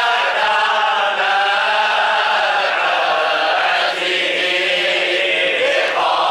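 A group of men chant together in unison, close by, in a room with a slight echo.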